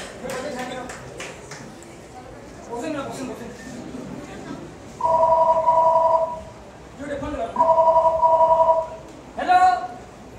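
Young men talk with animation.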